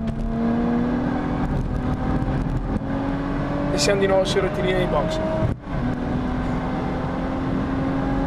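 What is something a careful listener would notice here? A race car engine drones loudly from inside the cabin.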